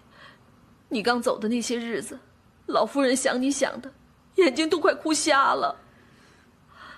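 A woman speaks pleadingly.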